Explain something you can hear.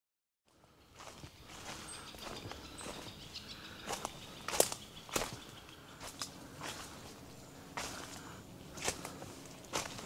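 Footsteps crunch and rustle through dry leaves and twigs on the forest floor.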